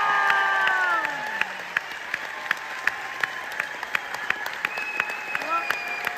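A large crowd claps together in a steady rhythm in a big hall.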